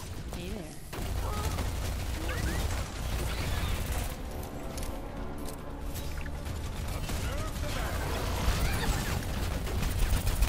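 Rapid gunfire and energy blasts crackle loudly throughout.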